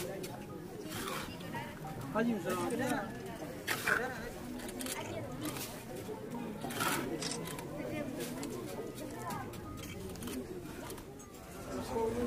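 Mortar or earth is scraped and placed with a trowel.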